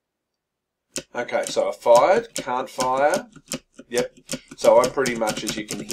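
A man speaks calmly and close to a microphone.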